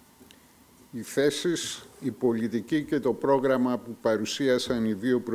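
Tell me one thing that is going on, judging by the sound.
An older man speaks into a microphone.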